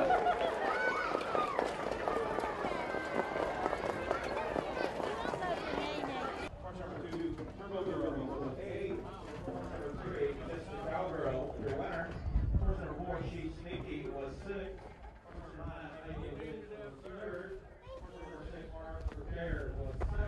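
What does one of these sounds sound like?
Horse hooves thud on a dirt track as harness horses trot past.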